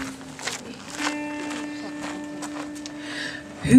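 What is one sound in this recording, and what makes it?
A stringed instrument rings out with a sustained twangy note.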